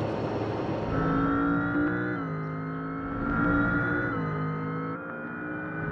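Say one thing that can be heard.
A car engine drones and shifts as the car drives away.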